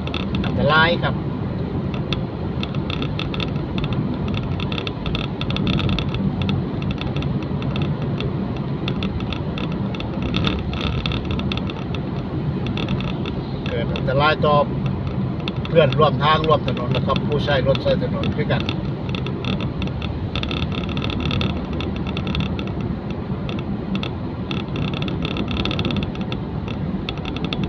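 A car drives along a wet road, heard from inside, with a low engine hum and tyre noise.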